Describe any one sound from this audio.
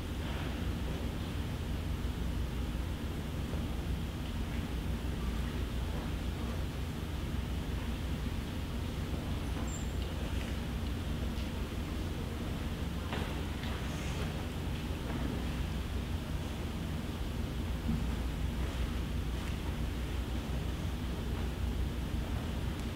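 A band plays music in a large echoing hall.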